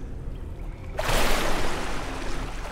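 A body splashes loudly into water.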